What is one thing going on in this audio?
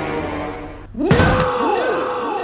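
A car crashes into metal with a loud bang.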